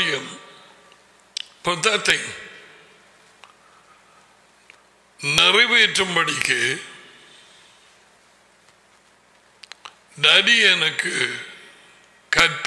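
An elderly man speaks slowly into a close microphone, in short phrases with pauses.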